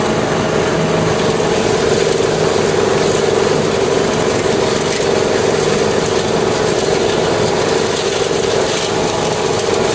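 A lawn mower engine drones steadily close by.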